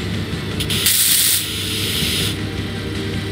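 A welding tool hisses and crackles in a short burst.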